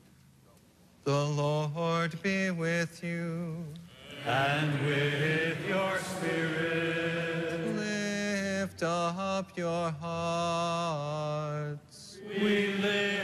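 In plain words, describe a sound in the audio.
A man chants in a sustained singing voice through a microphone, echoing in a large hall.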